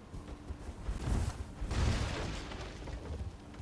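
Sword blows whoosh and strike with heavy thuds.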